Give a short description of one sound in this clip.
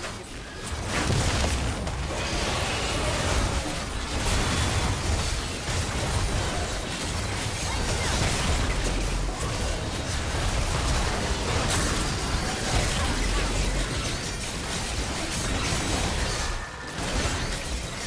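Magic spells and weapon strikes crash and boom in a busy fight.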